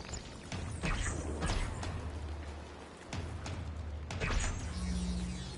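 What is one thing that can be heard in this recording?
Energy blasts crackle and burst with sharp electric zaps.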